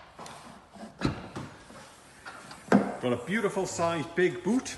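A car's tailgate unlatches with a click and swings open.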